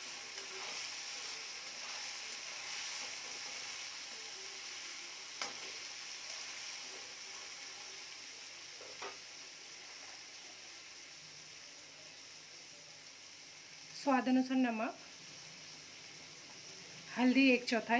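Food sizzles and crackles steadily in a hot pan.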